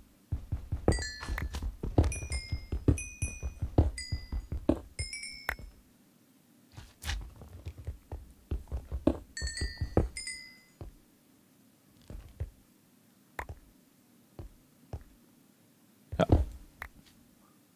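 A pickaxe chips at stone blocks.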